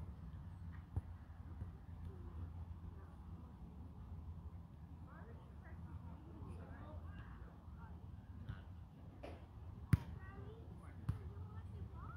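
A volleyball is struck with sharp thuds.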